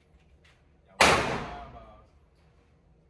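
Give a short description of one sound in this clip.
A single gunshot cracks loudly and echoes through a large hall.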